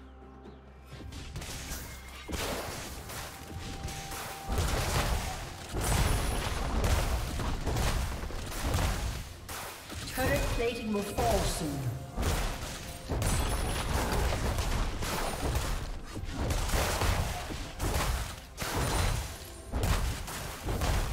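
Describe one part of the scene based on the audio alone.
Magic blasts, hits and clashing weapons crackle and boom in a busy fight.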